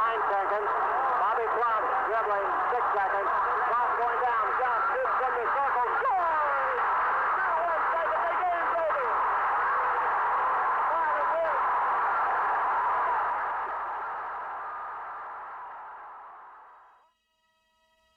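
A large crowd cheers and roars in a big echoing hall, then fades away.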